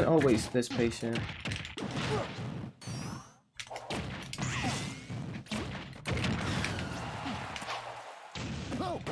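A young man talks with excitement, close to a microphone.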